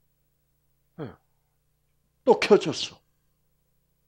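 An elderly man speaks with animation through a headset microphone.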